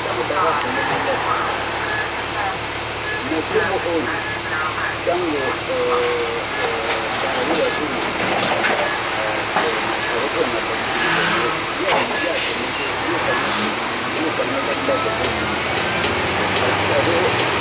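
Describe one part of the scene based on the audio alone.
A bus engine hums steadily while the bus drives.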